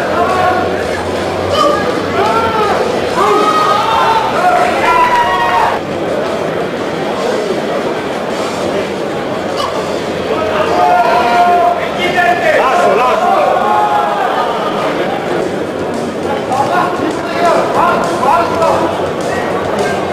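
A man speaks loudly, giving commands.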